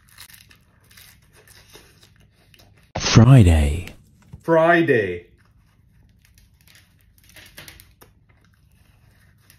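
A man chews food with soft, wet mouth sounds.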